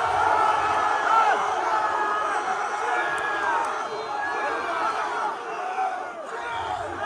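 A large crowd of young people cheers and shouts outdoors.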